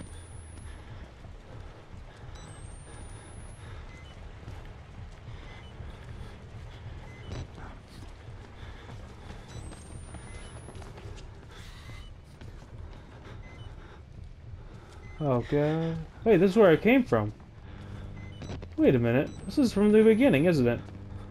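Footsteps walk slowly across a hard floor in a quiet, echoing space.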